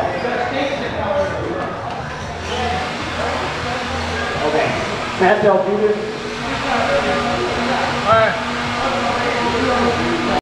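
A small remote-control car's electric motor whines and revs in an echoing hall.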